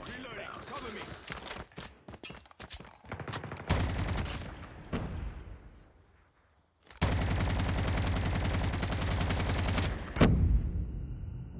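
A gun fires rapid bursts.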